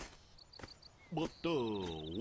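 A man speaks slowly in a goofy drawl.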